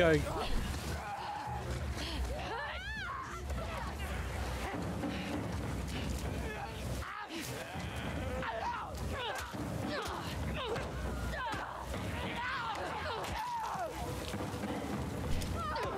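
Footsteps rustle through undergrowth at a run.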